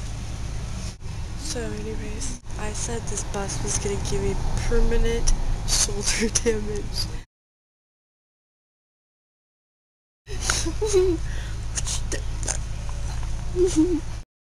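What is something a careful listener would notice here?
A young woman talks and laughs close to the microphone.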